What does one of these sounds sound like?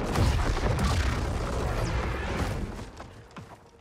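A loud rumbling blast roars.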